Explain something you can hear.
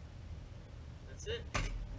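A metal shovel scrapes and clanks against a metal ash bucket.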